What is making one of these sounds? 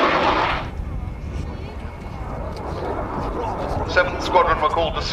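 A jet roars overhead.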